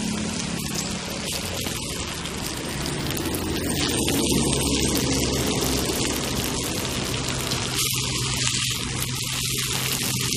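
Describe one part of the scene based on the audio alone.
A metal spoon scrapes and stirs rice in a metal pot.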